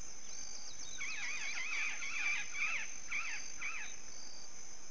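A gull cries repeatedly.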